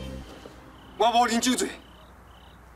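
A young man speaks firmly, close by.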